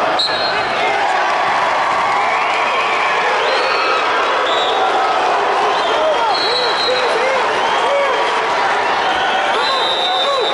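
A large crowd chatters and shouts in a big echoing arena.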